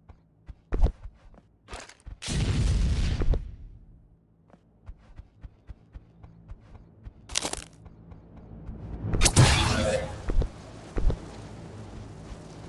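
Quick footsteps patter on wood and sand.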